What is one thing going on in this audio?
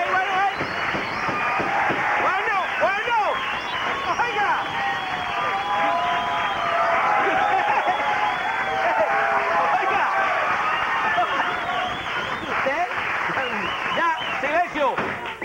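A man speaks loudly and theatrically.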